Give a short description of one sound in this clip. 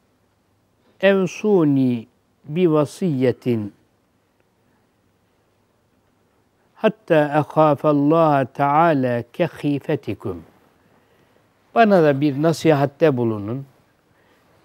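An elderly man speaks calmly into a microphone, in slow phrases with pauses.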